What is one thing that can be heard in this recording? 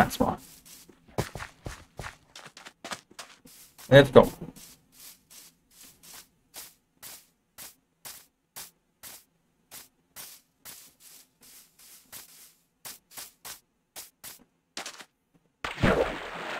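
Footsteps crunch steadily on grass and gravel.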